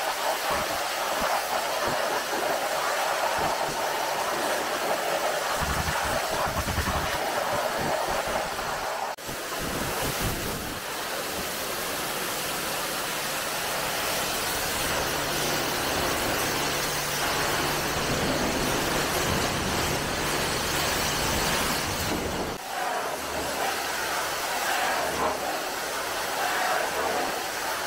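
A pressure washer hisses as its jet of water sprays onto a car.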